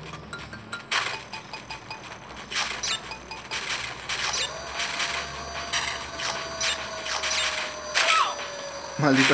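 Short bright chimes ring out as fruit is picked up.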